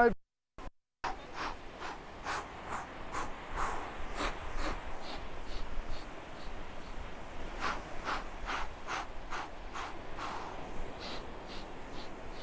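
Waves wash onto the shore outdoors.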